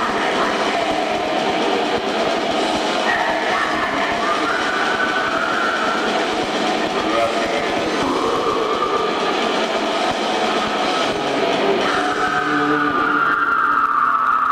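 A man sings harshly into a microphone.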